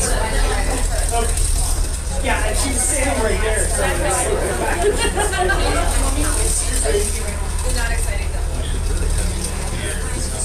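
A man speaks into a microphone to a room, heard through a loudspeaker.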